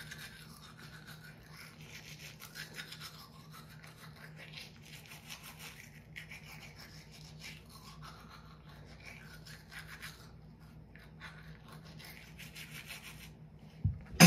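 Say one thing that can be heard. A toothbrush scrubs against teeth, close by.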